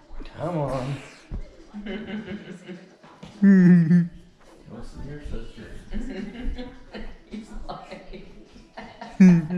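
A middle-aged man talks loudly nearby.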